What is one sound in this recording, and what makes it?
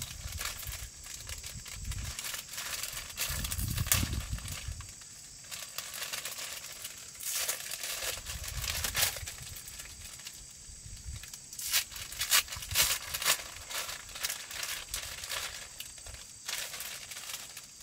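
Leaves rustle outdoors in a light breeze.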